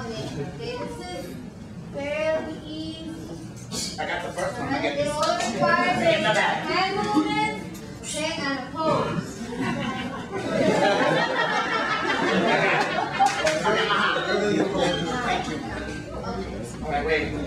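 A man talks with animation, answering a woman.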